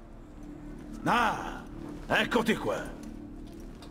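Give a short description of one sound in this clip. A man speaks with a deep voice.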